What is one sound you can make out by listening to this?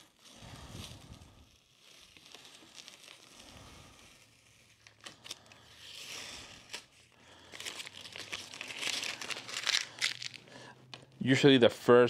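Tape crinkles and rustles as it is peeled and handled.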